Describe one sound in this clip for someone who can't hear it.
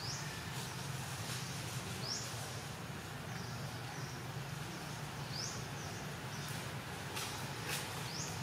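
A monkey chews food with soft smacking.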